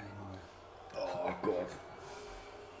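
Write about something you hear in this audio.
A man groans in dismay.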